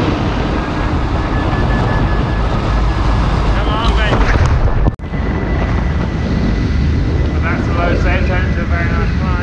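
Strong wind roars past a microphone at high speed.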